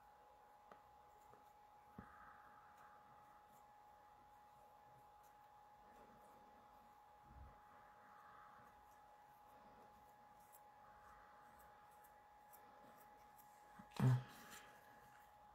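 Paper rustles softly.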